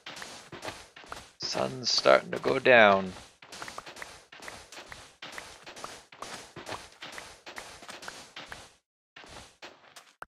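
A shovel digs into sand with quick, rhythmic crunching scrapes.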